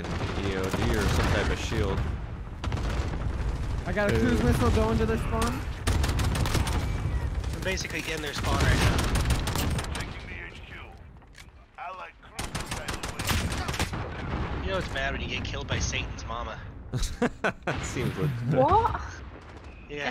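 Gunshots crack in quick bursts, close by.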